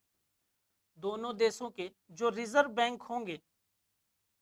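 A man speaks clearly into a close microphone, explaining.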